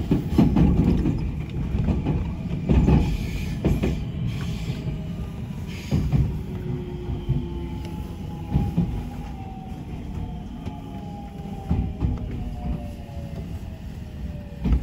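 A train rumbles past on the tracks with a low roar.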